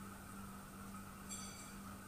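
Dry rice pours into a pot with a rustle.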